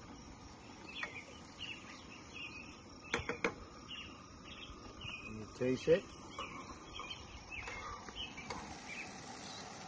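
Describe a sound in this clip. A metal spoon clinks and scrapes against a pan.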